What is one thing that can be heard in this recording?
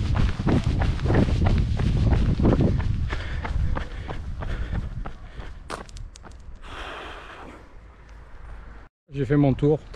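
Wind rushes against a microphone outdoors.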